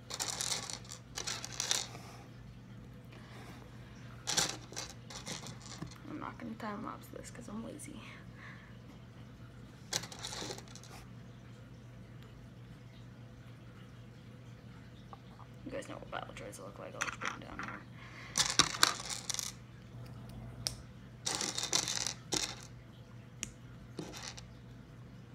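Plastic toy pieces click and rustle as they are handled up close.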